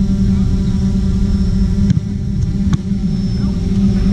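A ball thumps as a goalkeeper catches it.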